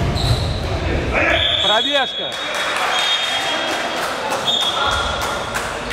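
A referee's whistle blows sharply several times in a large echoing hall.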